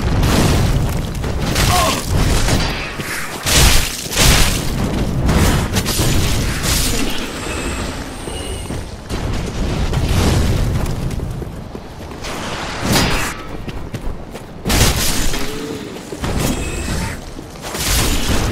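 A sword clangs and slashes against enemies.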